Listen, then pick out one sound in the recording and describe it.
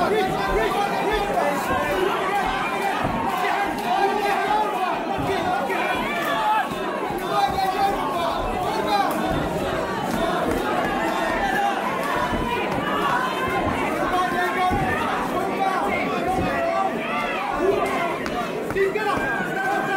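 Bodies thump and scuffle on a padded mat.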